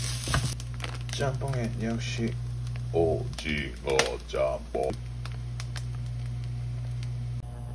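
A plastic food packet crinkles in someone's hands.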